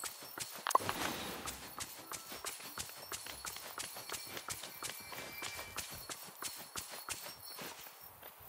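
Quick footsteps patter across soft grass.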